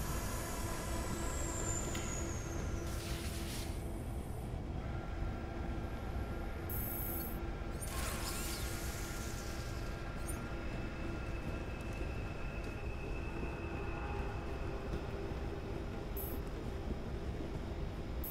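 Machinery hums steadily.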